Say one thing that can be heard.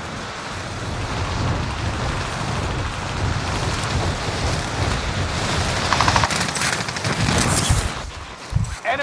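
Wind rushes loudly during a fall through the air.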